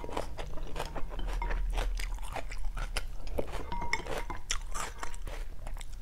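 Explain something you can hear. Chopsticks clink against a glass bowl.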